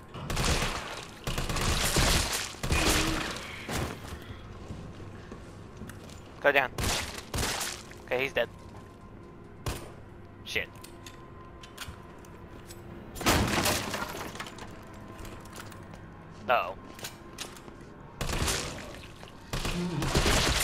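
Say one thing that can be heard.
Gunshots bang loudly and echo.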